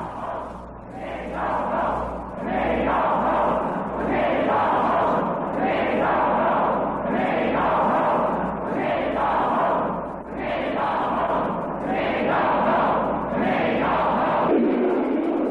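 A large crowd chants in a steady rhythm.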